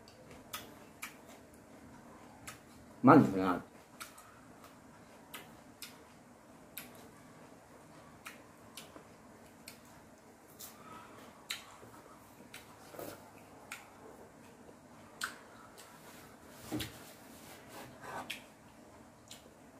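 A man chews and crunches food close by.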